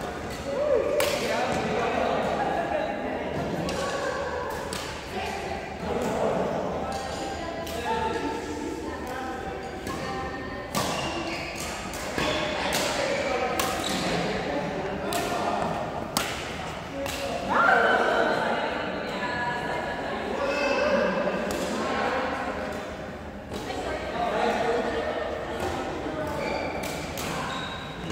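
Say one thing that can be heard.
Sports shoes squeak on a hard floor.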